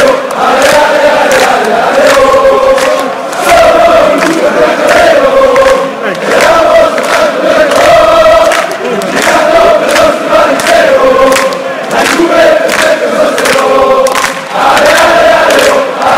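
Many people clap their hands in rhythm.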